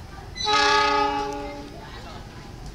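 A train horn blares from a distance, then fades.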